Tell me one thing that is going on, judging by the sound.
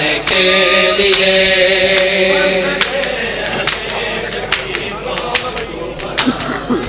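A crowd of men beat their chests in rhythm.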